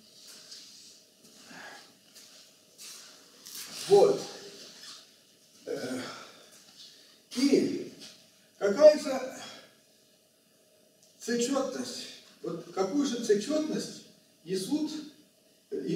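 An elderly man lectures calmly in a room with a slight echo, pausing between phrases.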